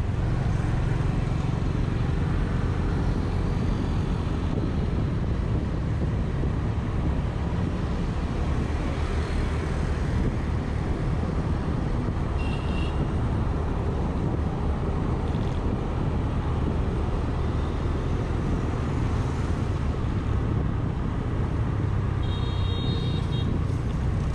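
Other motorbikes drone by in light city traffic.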